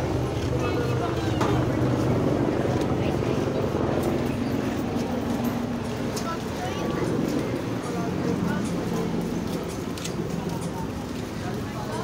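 A tricycle rolls along a concrete street.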